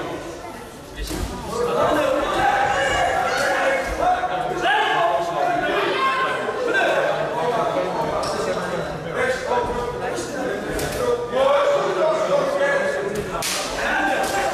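Punches and kicks thud against bodies.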